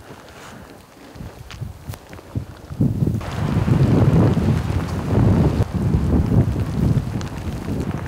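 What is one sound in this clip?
Footsteps crunch on dry grass and twigs.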